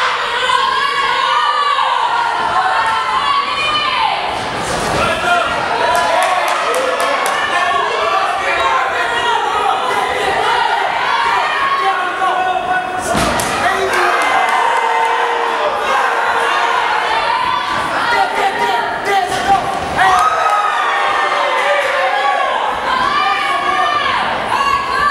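A crowd of spectators shouts and cheers indoors.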